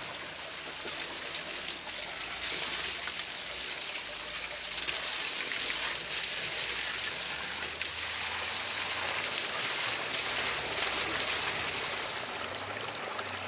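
Water sprays hard from a hose against a truck tyre.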